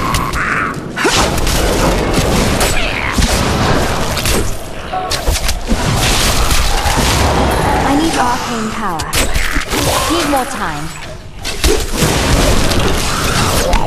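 Spells and weapon blows clash and crackle in a busy fight.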